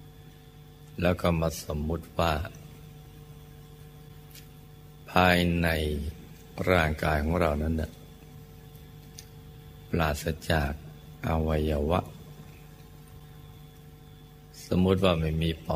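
An elderly man speaks calmly and slowly, in short phrases with long pauses.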